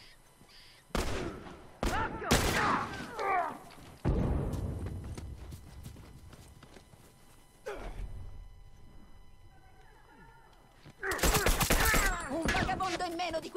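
Gunshots ring out in sharp bursts outdoors.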